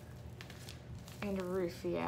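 A plastic bag of glitter crinkles in a woman's hands.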